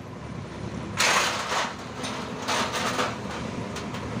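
A heavy wheel thuds down onto the ground.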